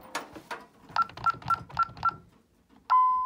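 Keypad buttons beep in quick succession.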